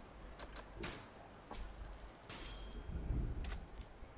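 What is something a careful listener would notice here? A car door opens.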